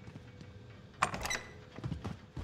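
A door bangs open.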